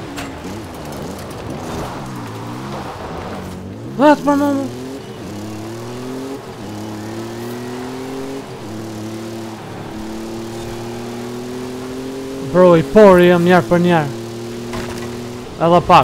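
A car engine drones steadily, rising and falling in pitch as it shifts gears.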